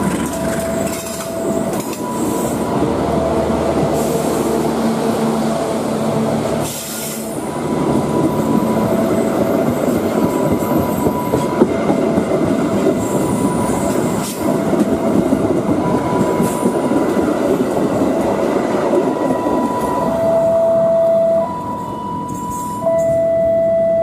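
A passenger train rumbles past close by, its wheels clattering over the rail joints.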